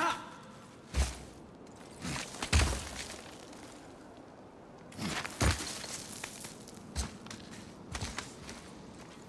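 Hands and feet thump and scrape against rock while climbing.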